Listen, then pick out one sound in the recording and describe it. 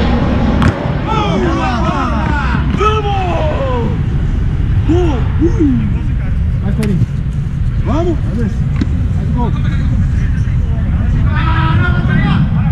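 Young men shout and call out across the field.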